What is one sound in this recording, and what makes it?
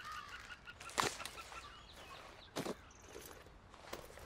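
A small object is tossed and lands on the ground with a thud.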